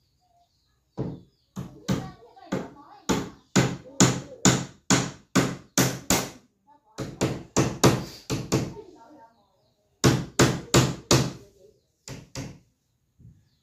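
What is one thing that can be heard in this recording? A hammer taps nails into wood in quick bursts.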